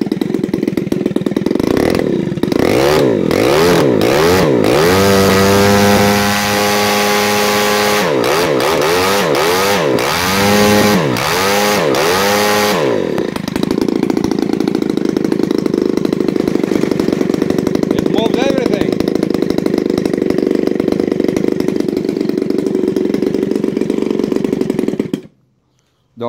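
A small petrol engine runs loudly and steadily, close by, then stops.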